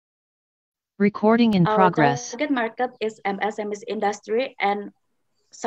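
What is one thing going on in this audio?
A young woman speaks through an online call.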